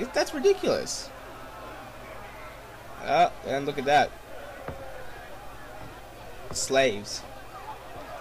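A man calls out loudly to a crowd in short bursts, outdoors.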